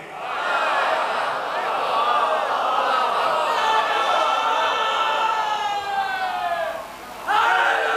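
A group of young men chant a mournful lament together through a microphone.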